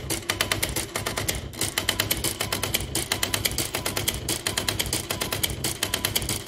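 An electric typewriter motor hums steadily.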